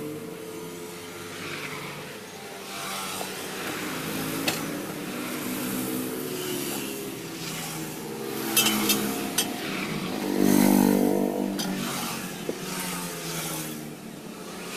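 A motorbike engine hums as it passes by.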